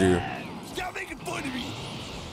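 A burst of energy crackles and whooshes.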